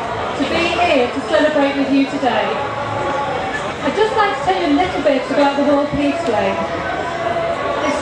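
A woman speaks animatedly through a microphone and loudspeaker.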